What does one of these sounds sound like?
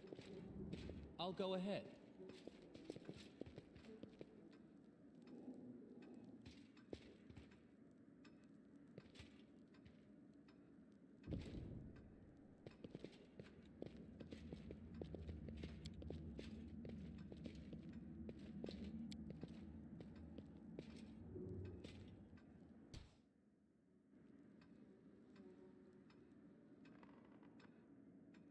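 A young man speaks casually into a nearby microphone.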